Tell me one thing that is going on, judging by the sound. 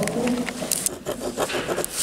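A pen scratches on paper.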